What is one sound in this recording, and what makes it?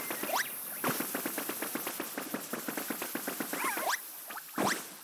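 Quick, light footsteps patter in a steady run.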